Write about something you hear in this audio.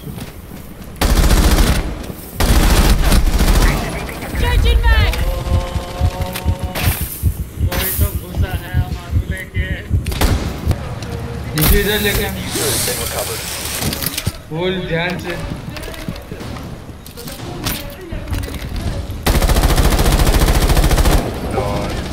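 Rifle fire rattles in rapid, loud bursts.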